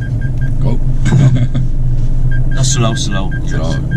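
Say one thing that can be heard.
A man laughs close by.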